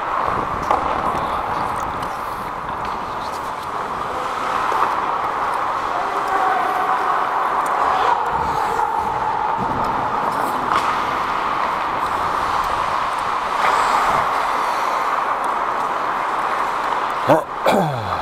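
The sound carries in a large echoing arena.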